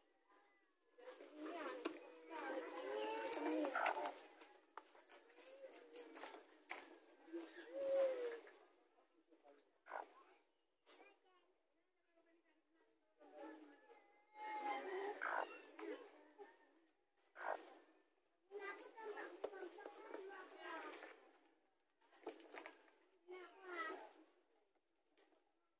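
A hen clucks and squawks close by.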